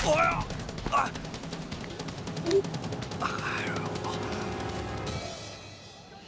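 A man groans and grunts with strain.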